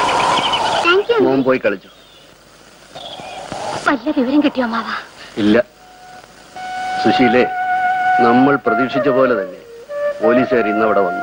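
A middle-aged man speaks with animation close by.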